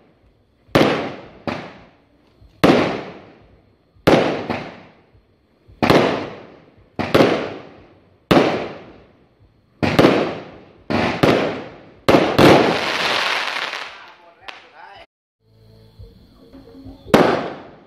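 Fireworks burst with loud booming bangs that echo away.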